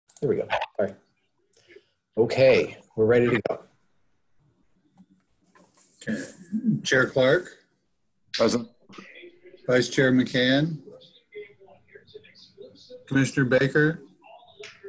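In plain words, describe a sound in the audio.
A man speaks calmly through an online call, in short phrases with pauses.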